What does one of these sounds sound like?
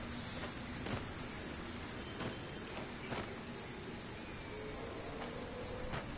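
Footsteps thud on stone.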